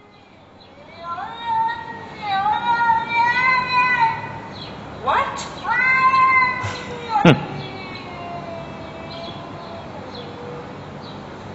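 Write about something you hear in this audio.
A cat meows repeatedly, heard through a phone's small speaker.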